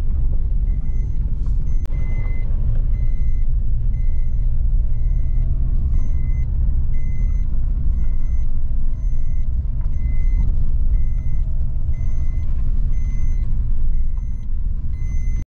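A car engine rumbles steadily as the car drives along a rough road.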